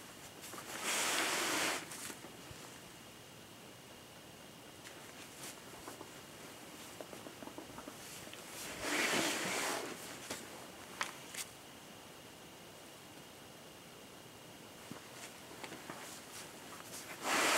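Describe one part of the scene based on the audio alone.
Fabric rustles and swishes loudly in bursts.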